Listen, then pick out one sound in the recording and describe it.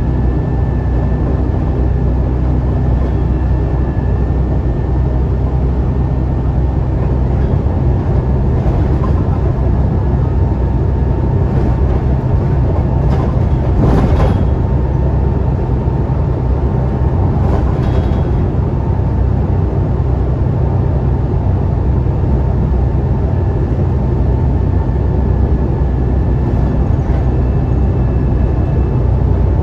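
Tyres roar on a road surface.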